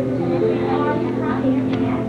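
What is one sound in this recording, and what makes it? Adults in an audience murmur nearby.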